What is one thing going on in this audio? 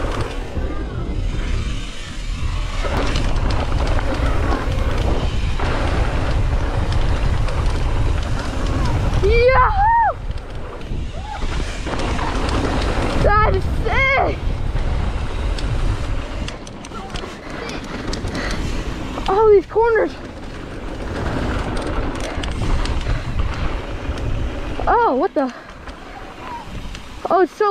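Bicycle tyres crunch and rumble over a loose dirt trail.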